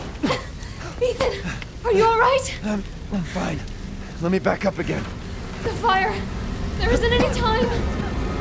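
A young woman calls out urgently, close by.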